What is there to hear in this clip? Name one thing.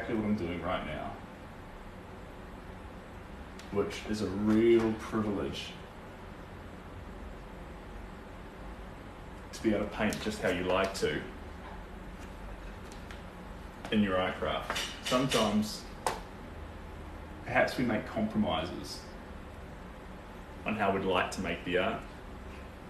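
A young man talks calmly and close by, in short bursts.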